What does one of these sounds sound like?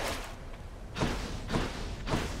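A sharp crackling lightning strike bursts out.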